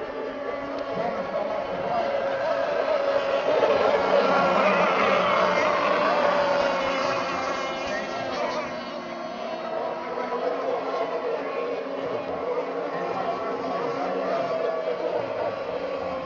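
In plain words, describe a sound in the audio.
A small motor whines at high pitch as a model boat races across water, rising and falling as it passes.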